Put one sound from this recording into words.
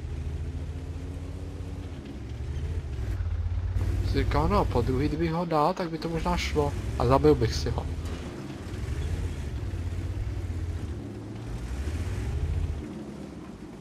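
A heavy tank engine rumbles and drones low.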